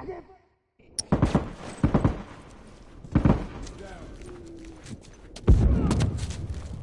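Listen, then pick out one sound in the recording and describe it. Gunshots crack loudly in short bursts.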